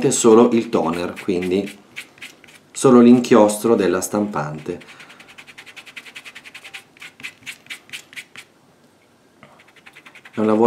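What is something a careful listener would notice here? Fingers rub quickly back and forth over paper.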